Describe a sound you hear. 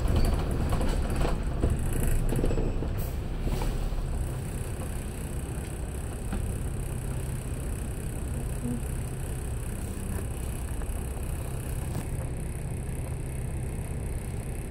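A bus engine rumbles steadily while idling.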